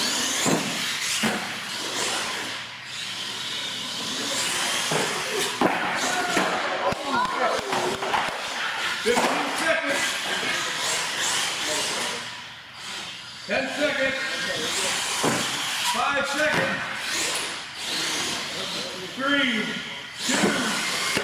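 A small electric motor whines loudly as a remote-control truck races around an echoing hall.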